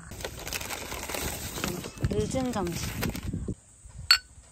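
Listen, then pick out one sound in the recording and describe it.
A paper bag rustles and crinkles.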